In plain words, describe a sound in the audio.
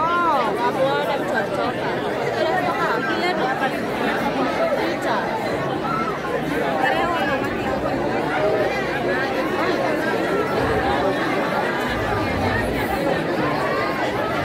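A crowd of young men and women murmurs and talks.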